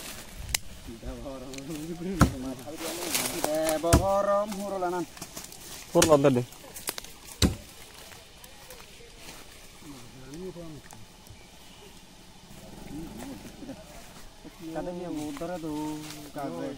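A man talks outdoors.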